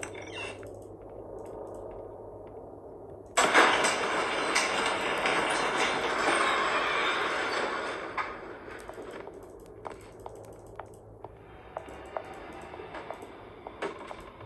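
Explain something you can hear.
Fingers tap on a touchscreen.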